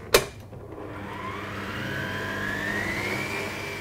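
A stand mixer whirs into motion and rises in pitch.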